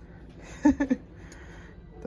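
A ceramic mug clinks lightly against a glass shelf.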